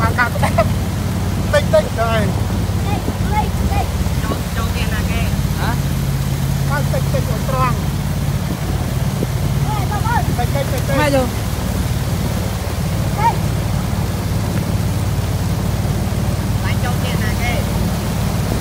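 A man speaks cheerfully close by, raising his voice over a motor.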